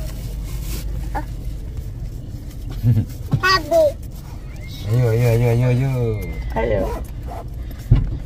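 A young woman talks and sings playfully close by.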